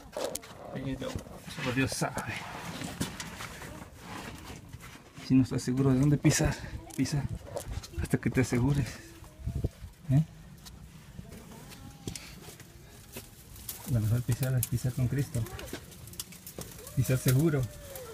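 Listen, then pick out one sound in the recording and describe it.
Footsteps scrape and knock on loose rocks close by.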